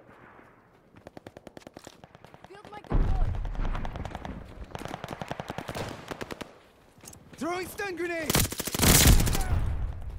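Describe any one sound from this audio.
A submachine gun fires rapid bursts of shots close by.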